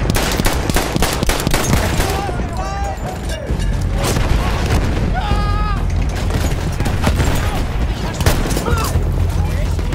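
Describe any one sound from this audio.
Shells explode with deep booms and rumbling.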